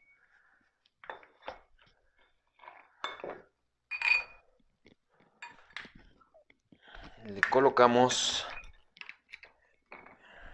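Metal weight plates clink and scrape against a steel bar.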